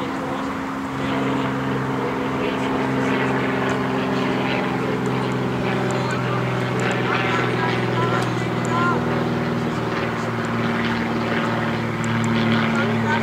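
Footballers shout to each other across an open field in the distance.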